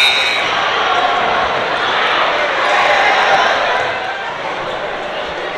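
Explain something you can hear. A crowd cheers and murmurs in a large echoing gym.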